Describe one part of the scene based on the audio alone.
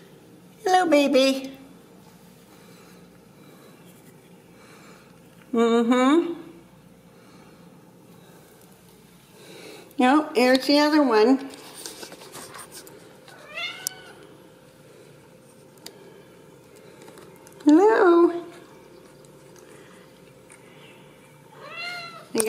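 A kitten meows loudly, again and again, close by.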